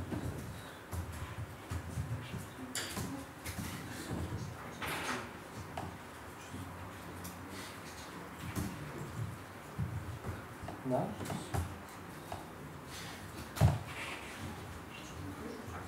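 A young man talks calmly through a microphone.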